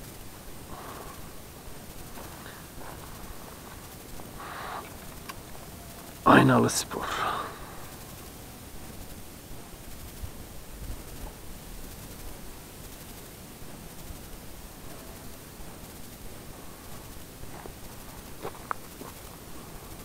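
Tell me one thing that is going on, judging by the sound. Footsteps crunch on loose gravel nearby.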